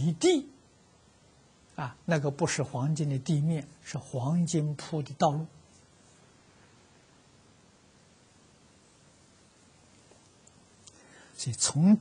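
An elderly man speaks calmly and steadily into a close microphone.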